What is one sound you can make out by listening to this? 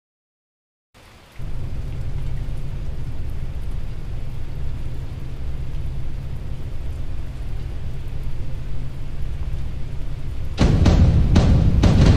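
Waves wash and rumble against a large warship at sea.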